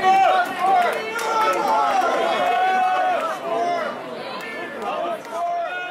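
A band plays loud live music through loudspeakers.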